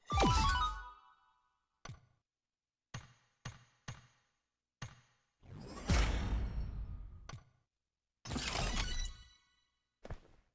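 A short game fanfare plays.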